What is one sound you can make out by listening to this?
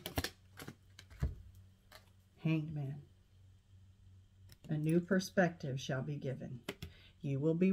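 Playing cards tap and slide softly on a table.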